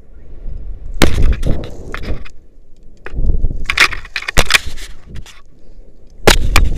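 Dry grass and twigs crackle and snap underfoot.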